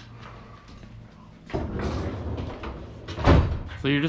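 A floor jack creaks and clanks as its handle is pumped.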